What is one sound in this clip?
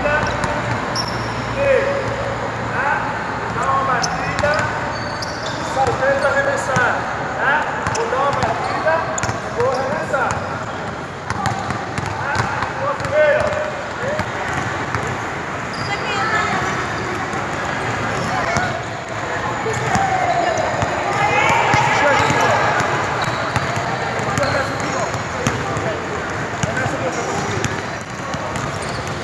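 Children chatter and shout in a large echoing hall.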